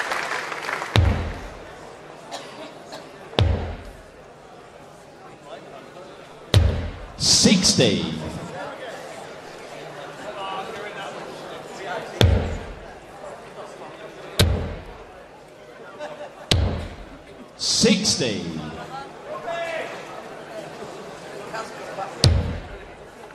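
Darts thud sharply into a board.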